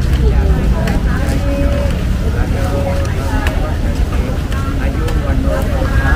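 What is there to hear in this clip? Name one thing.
A vendor's tongs clack on metal trays.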